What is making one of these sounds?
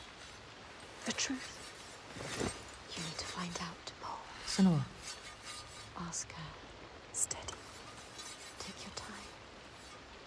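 A young woman speaks softly in reply.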